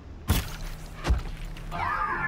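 An arrow strikes its target with a sharp thud.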